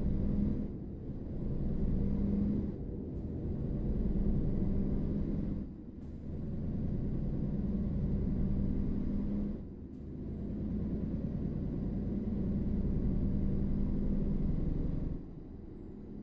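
A truck engine drones loudly, rising in pitch and dropping back with each gear change.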